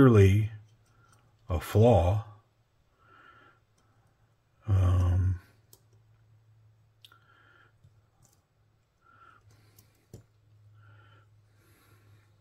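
A metal folding knife clicks softly as it is handled.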